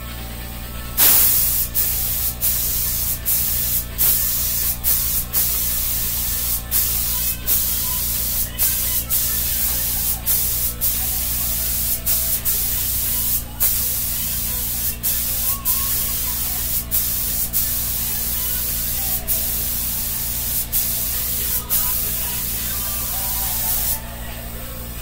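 A power sander runs with a loud, steady hiss, pausing briefly now and then.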